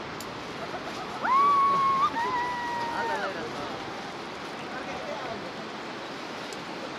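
A river rushes over rocks.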